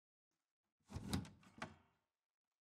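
A toaster lever clicks down.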